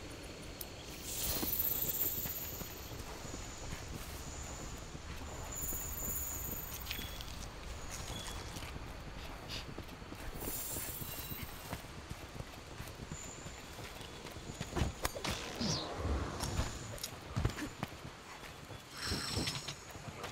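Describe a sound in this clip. Footsteps tread over soft forest ground.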